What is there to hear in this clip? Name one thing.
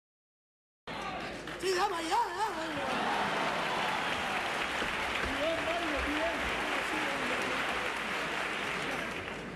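Acoustic guitars strum.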